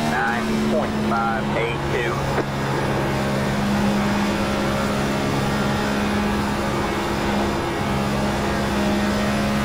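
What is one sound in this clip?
A race car engine drones loudly at high speed, steady throughout.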